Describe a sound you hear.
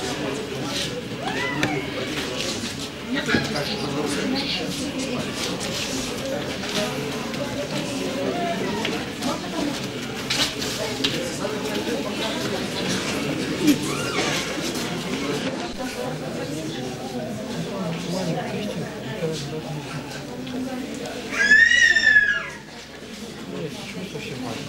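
A crowd of people murmurs and talks in a large echoing hall.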